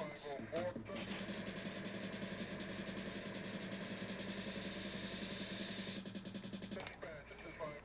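A pinball game plays a loud buzzing electronic sound effect.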